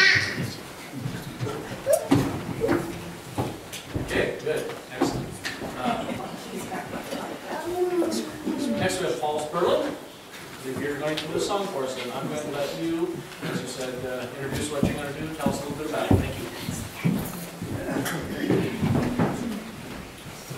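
A man speaks calmly through a loudspeaker in an echoing room.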